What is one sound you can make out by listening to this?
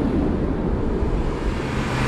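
A vehicle engine drones.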